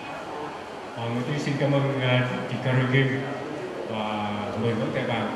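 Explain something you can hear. A man sings into a microphone, heard through a loudspeaker.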